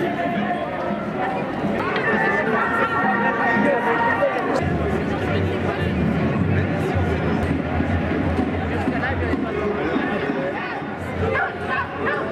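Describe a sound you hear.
A large crowd murmurs and talks outdoors.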